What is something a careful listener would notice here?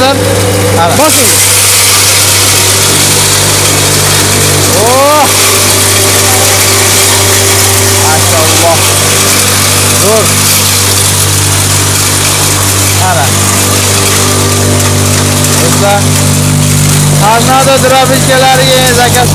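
A grain grinding machine whirs and roars steadily.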